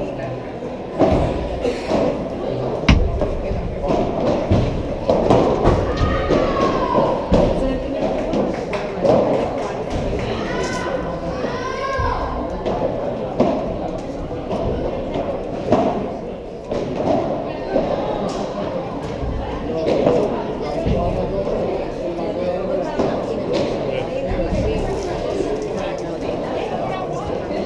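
Padel balls pop off rackets in a rally, echoing in a large hall.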